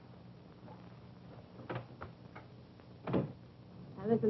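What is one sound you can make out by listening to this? A door shuts with a click.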